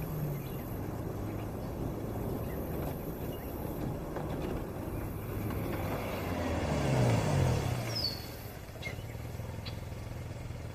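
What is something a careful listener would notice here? A car engine hums as a car drives slowly closer.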